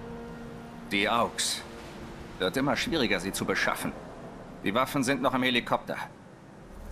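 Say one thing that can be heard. A second man talks casually and confidently.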